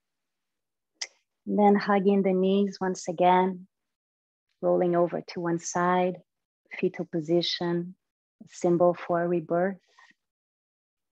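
A young woman speaks calmly and softly into a close microphone.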